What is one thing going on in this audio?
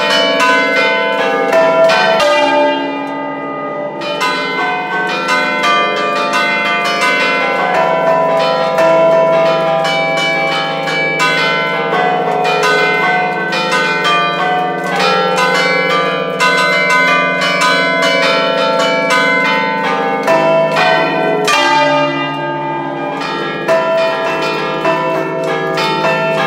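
A large bell swings and rings loudly close by, each strike ringing out over the last.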